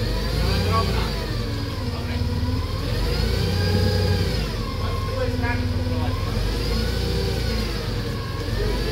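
A forklift engine rumbles steadily close by.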